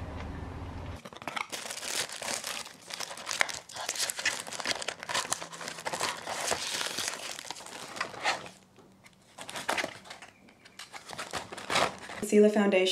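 Paper and packaging rustle and crinkle as hands unpack a box.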